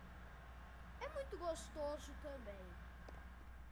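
A young boy speaks briefly and with animation into a nearby microphone.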